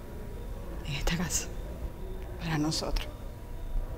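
Another woman replies briefly up close.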